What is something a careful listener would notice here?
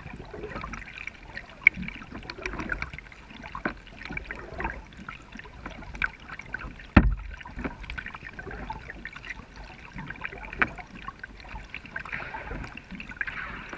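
Water trickles and laps against a kayak hull.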